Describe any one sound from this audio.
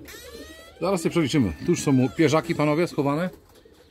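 Pigeons coo nearby.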